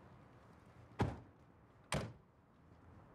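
Car doors slam shut with a heavy thud.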